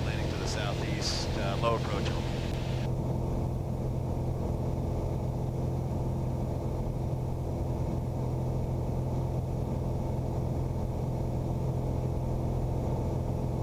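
A light plane's engine drones steadily.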